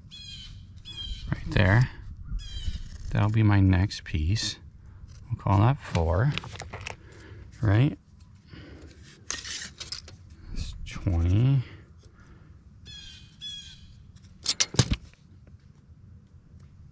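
A pencil scratches as it marks a line.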